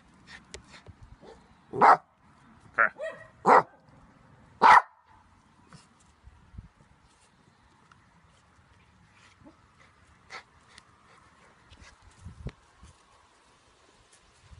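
A small dog growls while tugging on a rope toy.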